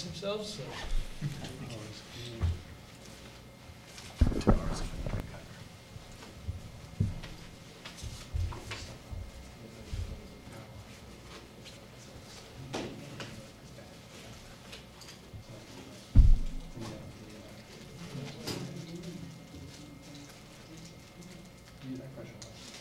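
A man speaks calmly through a microphone.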